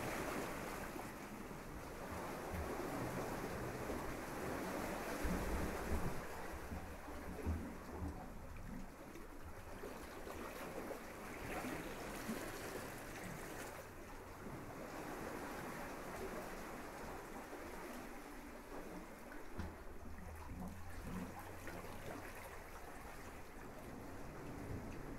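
Small waves wash gently onto a sandy shore, rising and fading.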